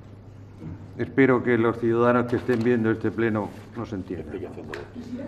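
An elderly man speaks calmly and closely through a microphone.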